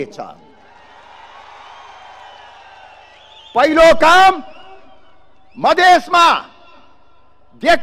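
An elderly man speaks forcefully into a microphone, with pauses between phrases.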